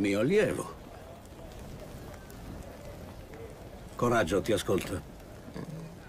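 An elderly man speaks calmly and firmly, close by.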